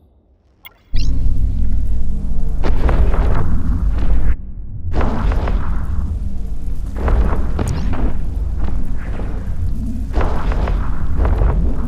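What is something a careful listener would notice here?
A deep rumbling hum drones steadily.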